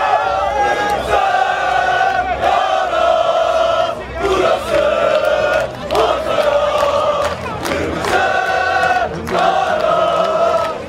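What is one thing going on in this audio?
A large crowd of fans chants and sings loudly in unison.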